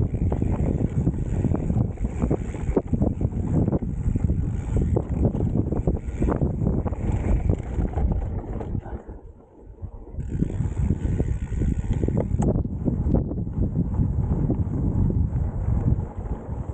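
Wind rushes past a fast downhill mountain bike ride.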